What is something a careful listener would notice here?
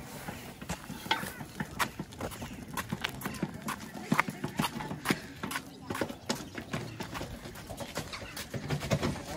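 A wheelbarrow rattles over paving stones.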